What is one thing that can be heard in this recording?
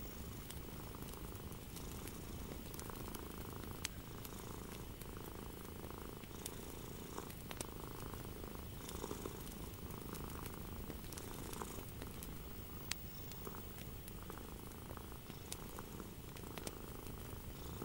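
Paper rustles and crinkles softly.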